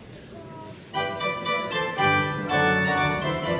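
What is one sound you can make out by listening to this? A large mixed choir begins singing loudly together.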